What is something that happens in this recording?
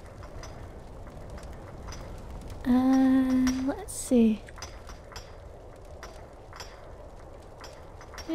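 Footsteps crunch steadily on stone and gravel.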